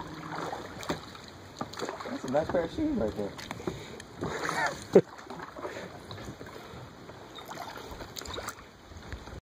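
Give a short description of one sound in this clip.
A stick knocks and scrapes against floating driftwood in water.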